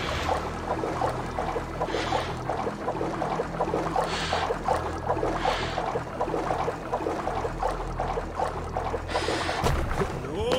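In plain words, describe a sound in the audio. Water splashes rhythmically as a person wades through it.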